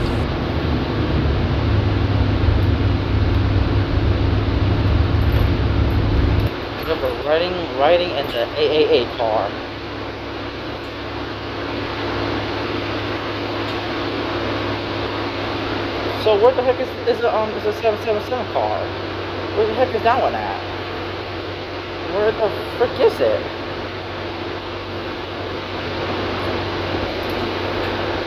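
A bus engine rumbles and hums steadily from inside the bus.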